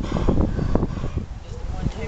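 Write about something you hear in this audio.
A dog pants softly.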